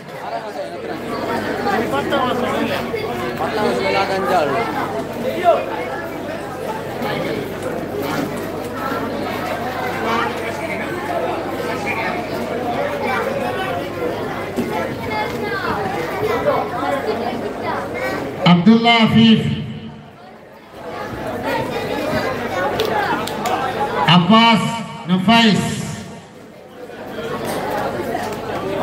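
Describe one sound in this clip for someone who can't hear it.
A crowd of men chatters and murmurs nearby.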